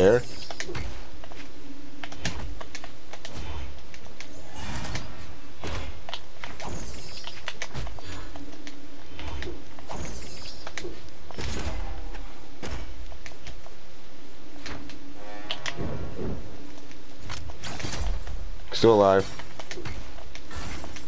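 Cartoon weapons whoosh and strike with sharp thuds in a fast fight.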